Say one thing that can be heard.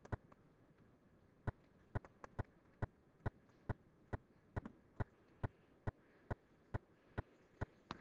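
A pen taps on a tablet.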